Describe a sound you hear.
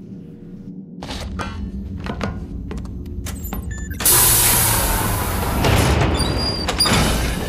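Heavy footsteps clank on a metal walkway.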